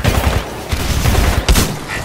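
Gunfire bursts ring out in quick shots.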